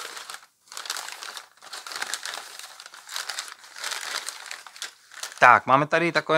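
Newspaper rustles and crinkles as hands move it about.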